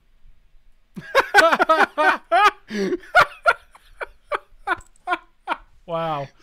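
A middle-aged man laughs loudly and heartily, close to a microphone.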